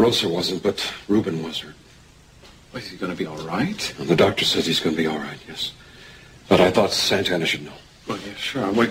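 An older man answers calmly, close by.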